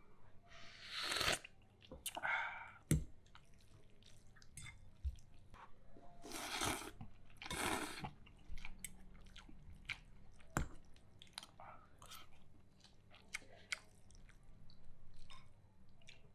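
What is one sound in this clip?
A fork and spoon clink and scrape against a plate as noodles are mixed.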